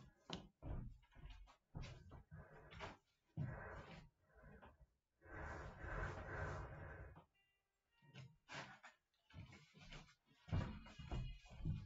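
Footsteps thud on a wooden floor close by.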